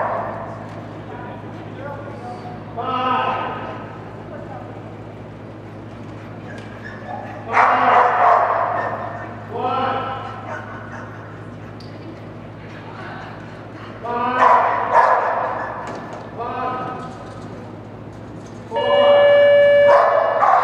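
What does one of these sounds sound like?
A woman calls out commands to a dog.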